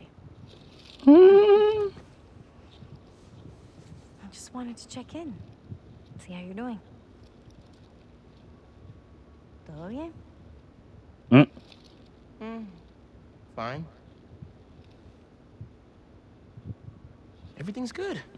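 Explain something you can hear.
A woman speaks softly and kindly.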